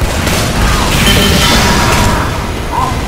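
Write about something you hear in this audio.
A heavy machine gun fires in a rapid rattling burst.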